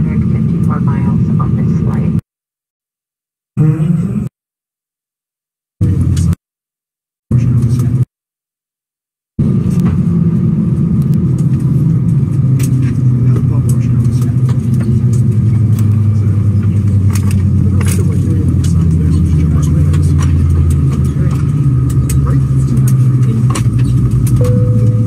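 A jet airliner's engines hum steadily at idle.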